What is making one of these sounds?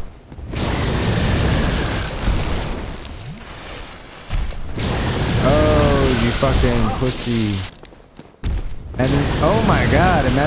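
A sword clashes against a dragon.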